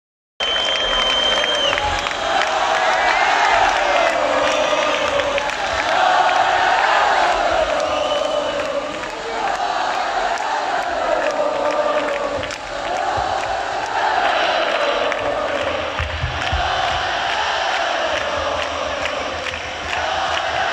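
A man sings through loudspeakers in a large echoing hall.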